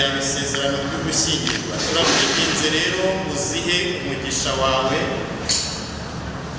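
A middle-aged man speaks solemnly, reading out.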